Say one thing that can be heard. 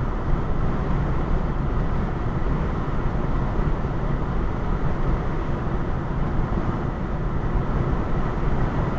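Tyres roll steadily on a highway, heard from inside a car.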